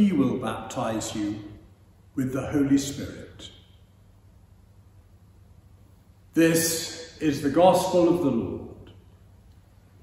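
An elderly man reads aloud calmly in an echoing hall.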